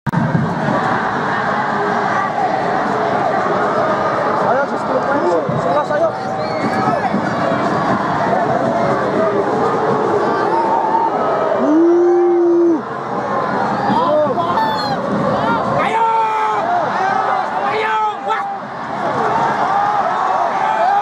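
A large stadium crowd chants and sings loudly, heard from within the stands.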